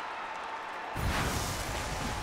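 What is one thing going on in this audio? A sharp crackling zap bursts out.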